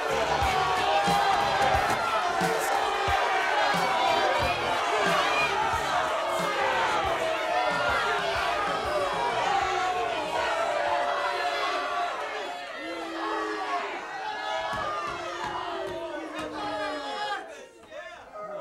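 A crowd of young adults laughs and cheers loudly.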